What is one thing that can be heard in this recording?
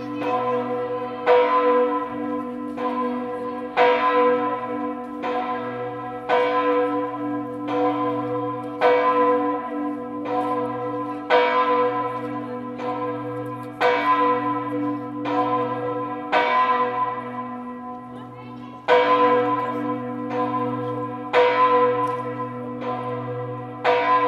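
Church bells ring out loudly in a steady, repeating peal, each stroke ringing on and fading.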